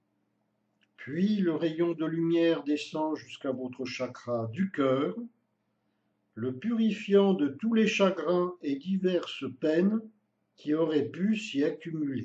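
An older man speaks calmly and clearly close to a microphone.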